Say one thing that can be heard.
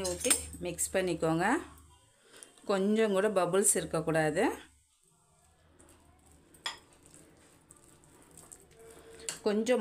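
A spoon scrapes and stirs in a glass bowl.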